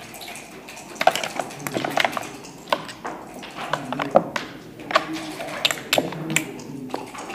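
Backgammon checkers click and clatter as they are moved on a wooden board.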